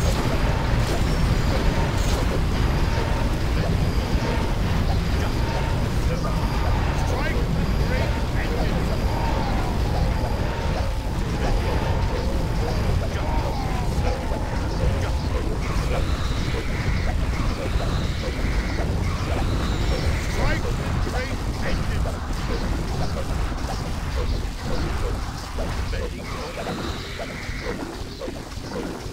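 Swords clash and spells crackle in a busy battle.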